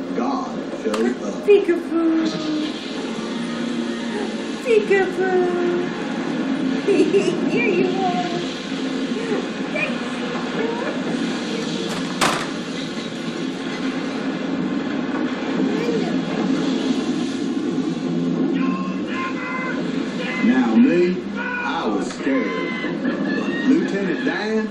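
A baby babbles and squeals.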